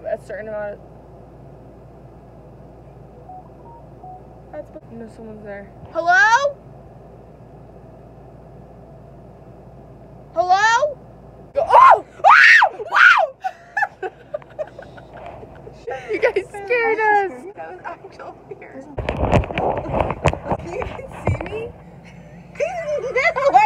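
Young women talk and exclaim close by.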